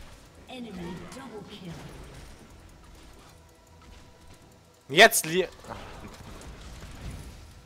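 Magic spells crackle and zap during a fight.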